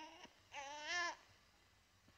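A baby whimpers softly.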